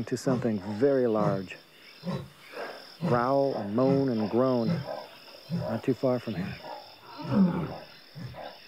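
A man speaks close up in a low, urgent voice.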